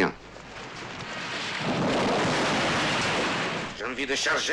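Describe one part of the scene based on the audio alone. A building collapses with a long roaring rumble.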